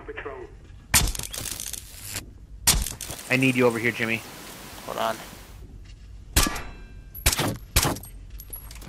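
A silenced gun fires several sharp shots.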